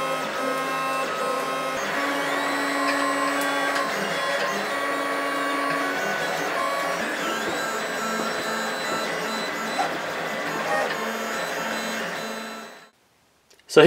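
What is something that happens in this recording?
A 3D printer's motors whine and hum in shifting tones as the print head moves.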